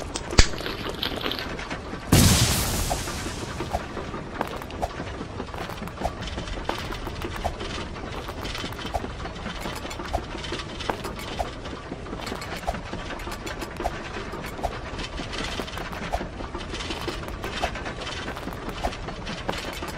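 Quick footsteps patter on a hard surface.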